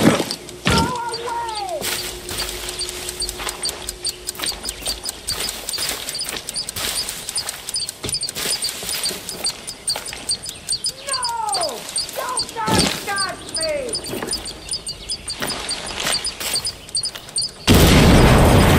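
Footsteps crunch over ground and wooden planks at a steady walking pace.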